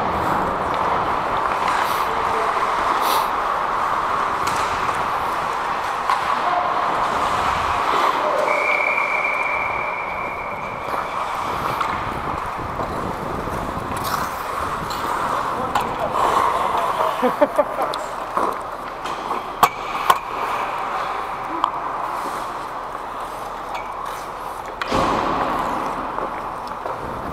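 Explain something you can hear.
Hockey sticks clack sharply against the ice and puck.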